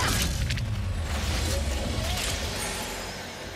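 A deep energy blast roars and slowly fades.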